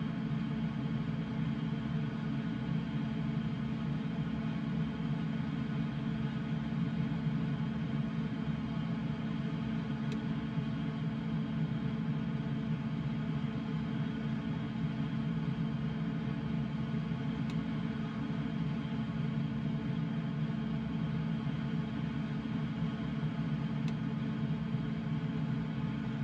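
A small aircraft's engine drones steadily.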